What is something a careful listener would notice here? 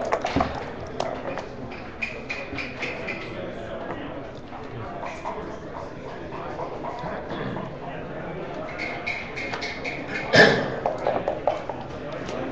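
Game pieces click against a wooden board.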